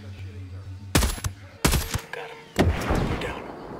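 A rifle fires three loud shots that echo away outdoors.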